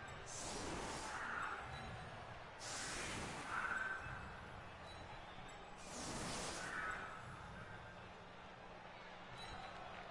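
A stadium crowd roars in swelling waves.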